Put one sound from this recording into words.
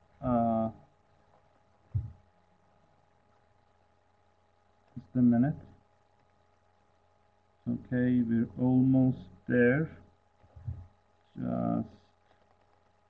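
A man speaks in short, slow phrases through an online call, with long pauses.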